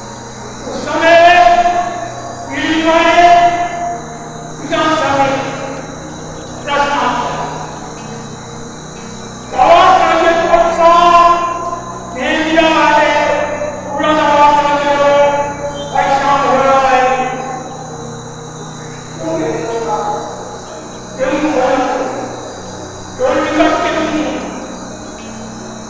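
An elderly man speaks forcefully into a microphone in short bursts, heard through loudspeakers.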